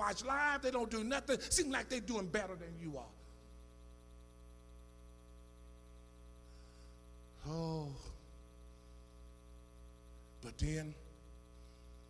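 A man preaches with passion through a microphone, his voice carrying in a large room.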